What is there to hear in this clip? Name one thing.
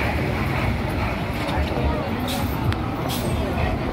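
A bus engine rumbles as it passes close by.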